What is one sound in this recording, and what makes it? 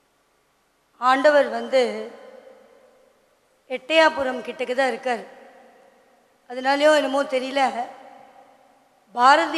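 A woman sings into a microphone in short melodic phrases, with pauses between them.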